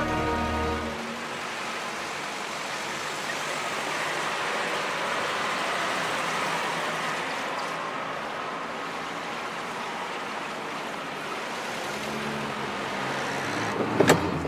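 Old car engines hum as the cars drive past.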